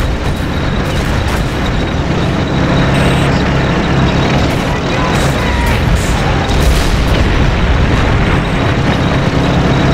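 Machine guns rattle steadily.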